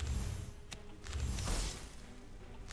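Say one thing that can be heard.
A soft magical whoosh swells and fades.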